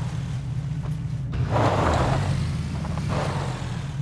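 A motorbike engine starts and revs.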